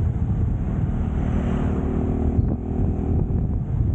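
A truck engine rumbles as it passes close by.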